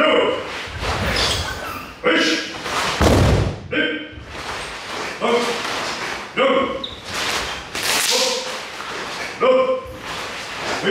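Cotton uniforms snap sharply with each strike.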